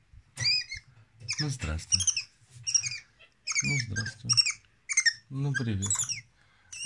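A small monkey squeaks and chirps in short, high bursts close by.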